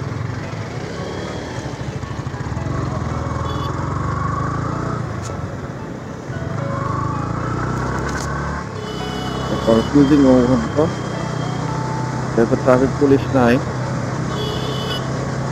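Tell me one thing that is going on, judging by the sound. Other motorbikes hum nearby in traffic.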